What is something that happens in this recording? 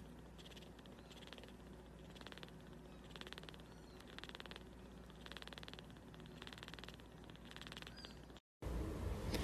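A small kitten breathes softly in quick, even puffs.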